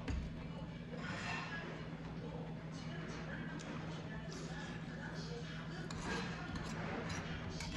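A man slurps and chews food close by.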